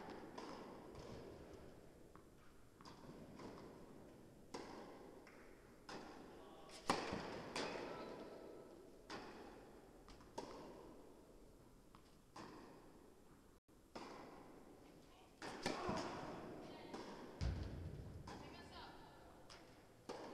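Tennis balls are struck with rackets and bounce on the court, echoing in a large hall.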